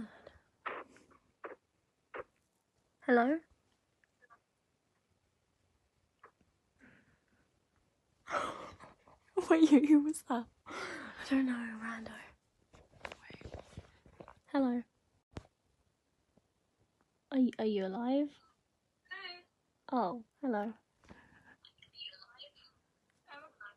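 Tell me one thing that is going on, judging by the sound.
Two young girls talk and giggle close to a phone microphone.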